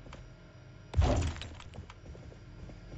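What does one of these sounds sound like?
A metal machine clanks and rattles as it is set down.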